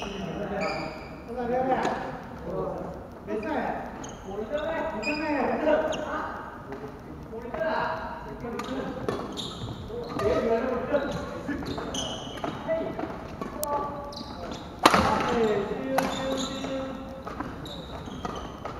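A young man talks casually nearby in a large echoing hall.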